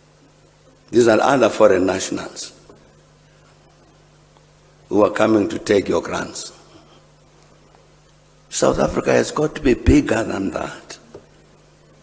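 An elderly man speaks slowly and deliberately into a microphone, in short bursts with pauses.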